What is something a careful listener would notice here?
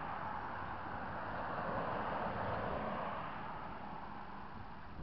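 A pickup truck drives past close by.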